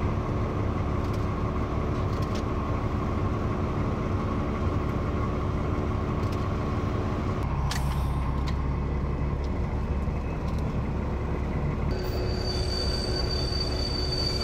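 Wheels clatter over the rail joints.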